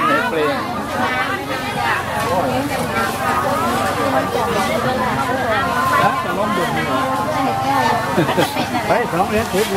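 Several people chatter outdoors around the listener.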